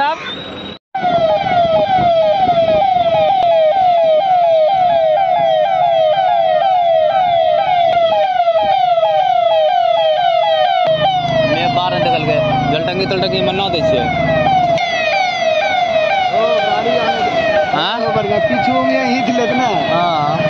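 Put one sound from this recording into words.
A police siren wails in a fast, steady rising and falling pattern.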